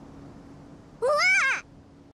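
A young girl exclaims in a high, animated voice.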